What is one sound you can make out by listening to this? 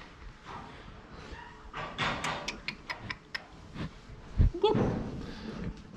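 A calf sniffs and snorts right up close.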